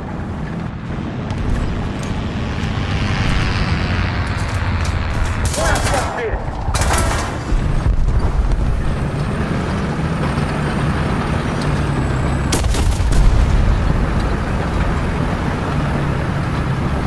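A tank engine rumbles deeply and steadily.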